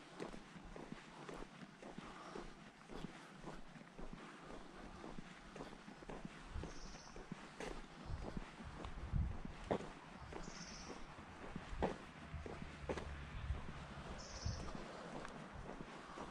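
Footsteps tap steadily on a paved path outdoors.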